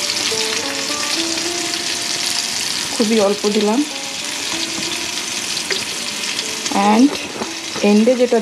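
Vegetables sizzle steadily in a hot frying pan.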